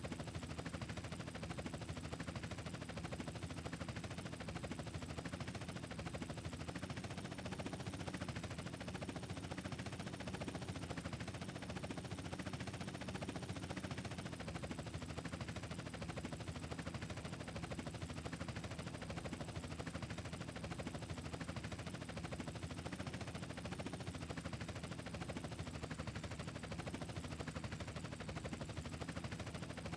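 A helicopter's rotor blades chop steadily and close by.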